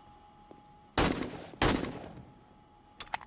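A rifle fires loud shots with a short echo.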